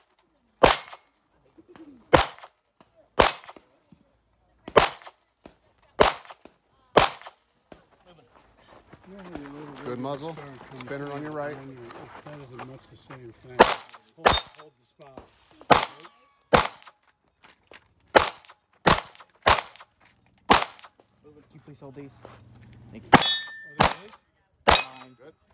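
Gunshots crack loudly outdoors in quick bursts.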